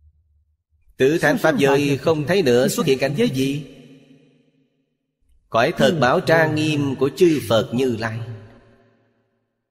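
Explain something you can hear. An elderly man speaks calmly and clearly into a close microphone, in short phrases with pauses.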